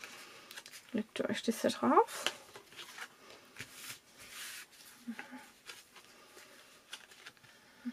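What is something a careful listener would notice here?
Paper crinkles and rustles as it is folded by hand.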